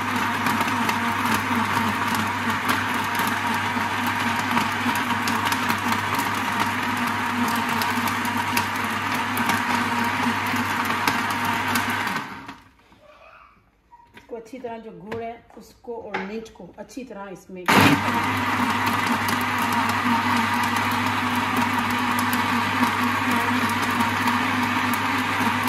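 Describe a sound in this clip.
A blender motor whirs loudly and steadily, stopping briefly before starting again.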